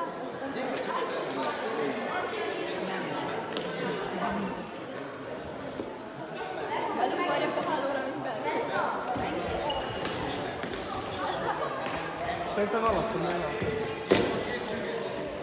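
Young men and women chatter and call out in a large echoing hall.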